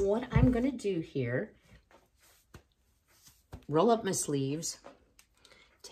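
A middle-aged woman talks calmly close by.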